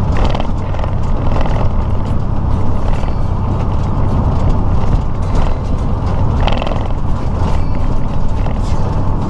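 A truck engine drones steadily at highway speed.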